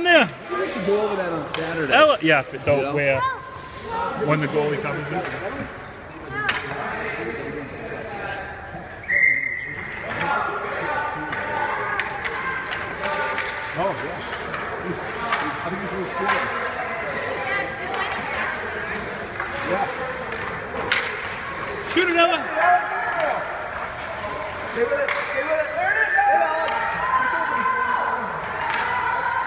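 Adults and children chatter and call out nearby in an echoing hall.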